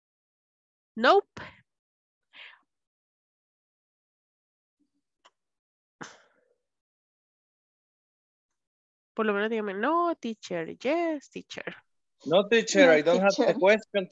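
A young woman speaks with animation through an online call.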